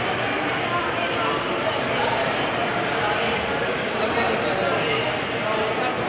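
A crowd of people murmurs and chatters in an echoing hall.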